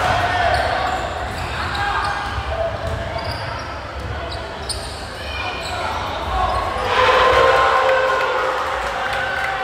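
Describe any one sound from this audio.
Basketball shoes squeak sharply on a hardwood court in a large echoing gym.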